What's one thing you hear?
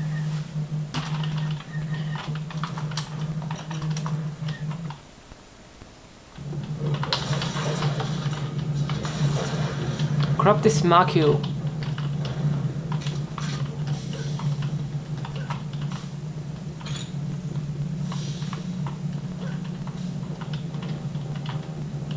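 A video game's gunfire and effects play through desktop speakers.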